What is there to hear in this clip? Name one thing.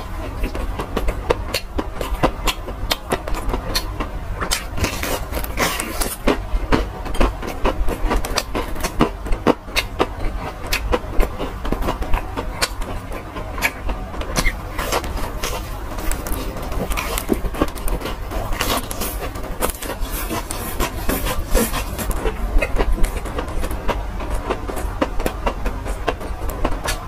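A young man chews crunchy food loudly, close to a microphone.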